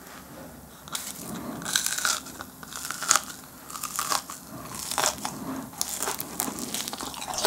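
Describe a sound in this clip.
A man bites and crunches a crisp pastry close to a microphone.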